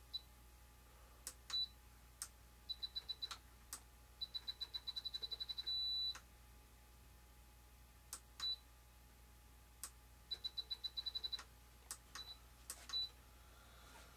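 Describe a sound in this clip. A radio control transmitter beeps in short, rapid bursts.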